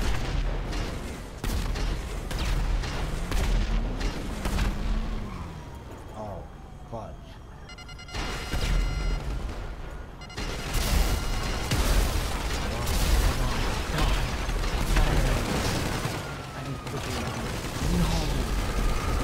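Gunshots crack rapidly.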